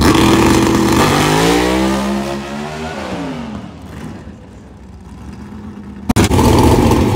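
A race car's engine roars, rising in pitch as it speeds away and fades into the distance.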